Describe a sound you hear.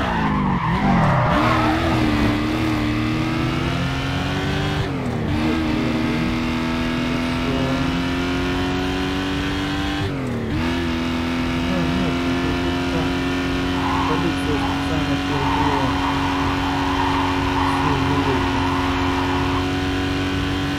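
Tyres screech as a car drifts through a corner.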